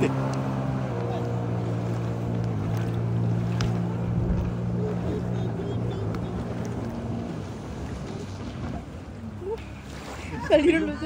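Water splashes and sprays behind a jet ski.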